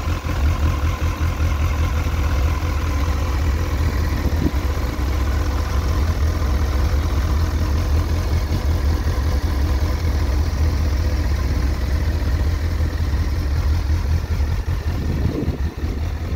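A motorcycle engine idles close by with a steady, low rumble.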